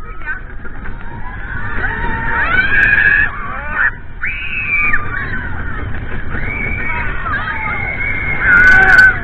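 Riders scream and cheer close by as the coaster speeds up.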